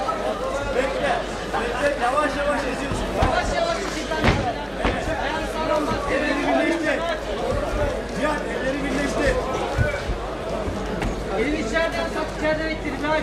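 Bare feet thud and shuffle on a canvas mat.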